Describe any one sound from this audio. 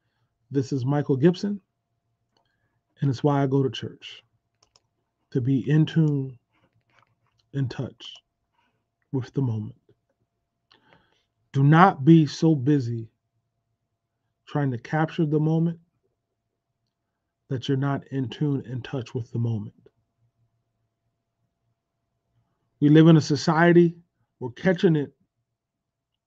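A middle-aged man speaks slowly and deliberately into a close microphone, pausing between phrases.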